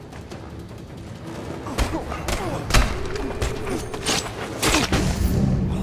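Heavy punches thud and smack in a fight.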